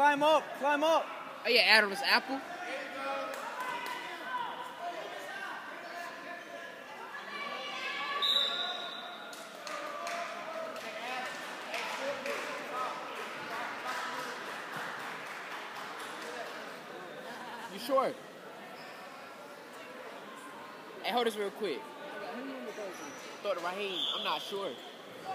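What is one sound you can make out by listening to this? Spectators shout and cheer in a large echoing gym.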